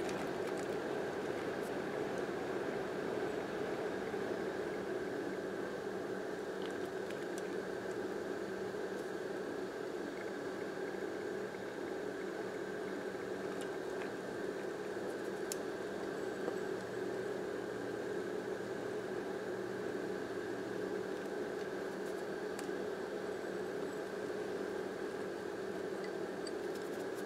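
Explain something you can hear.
Eggs sizzle and crackle steadily in a hot frying pan.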